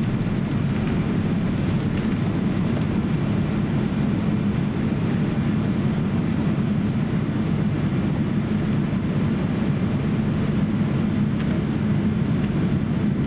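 Jet engines rumble steadily inside a cabin.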